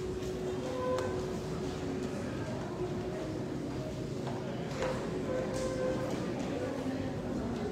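A large crowd murmurs softly in a big echoing hall.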